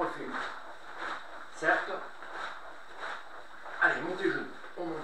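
A man's karate uniform swishes sharply with quick punches and kicks.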